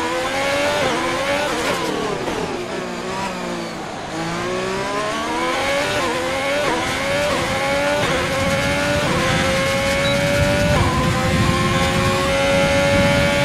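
A racing car engine screams, dropping in pitch on braking and rising again as it shifts up through the gears.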